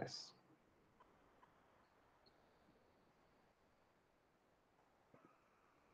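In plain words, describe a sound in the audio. A man speaks quietly over an online call.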